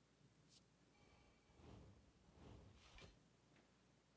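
A man speaks quietly and briefly into a close microphone.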